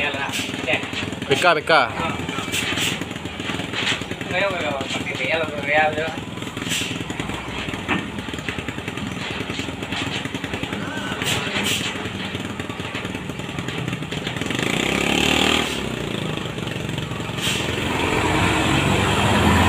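A heavy truck engine rumbles as the truck slowly climbs outdoors.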